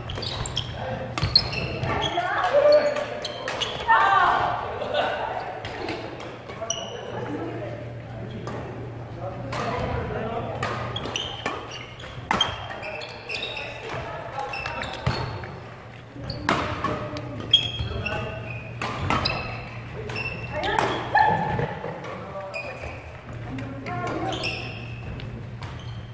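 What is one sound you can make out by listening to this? Shoes squeak on the wooden court floor.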